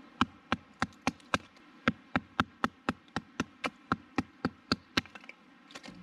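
A wooden baton knocks sharply on a knife, splitting wood in a quick steady rhythm.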